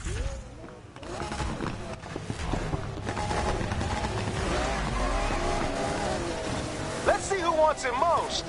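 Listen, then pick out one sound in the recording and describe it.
Race car engines roar and rev loudly as a race begins.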